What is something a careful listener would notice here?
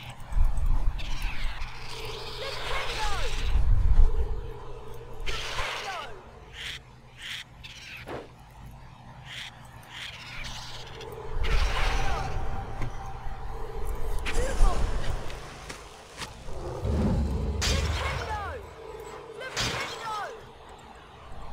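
A magic spell fizzes and whooshes in bursts.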